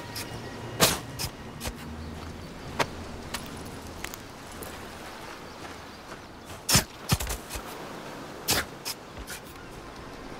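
A knife hacks wetly into an animal carcass in quick chops.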